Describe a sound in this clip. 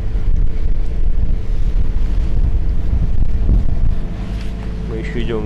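Wind buffets the microphone with a low, steady rumble outdoors.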